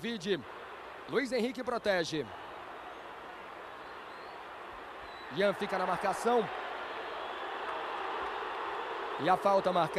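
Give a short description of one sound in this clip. A large crowd roars and murmurs steadily in a stadium.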